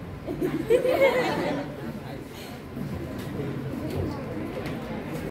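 A young woman speaks to an audience in a room with a slight echo.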